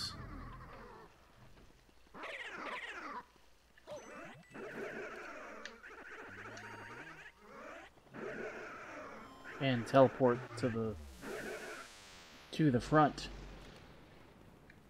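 Ghostly video game sound effects whoosh and warble.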